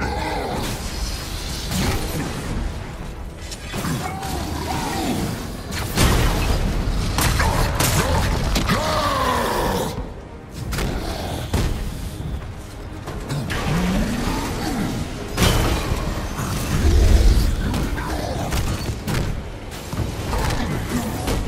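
Energy blasts crackle and boom.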